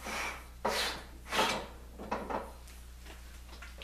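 Metal parts click and clack as a hand adjusts a table rail.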